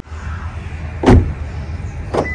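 A car door handle clicks open.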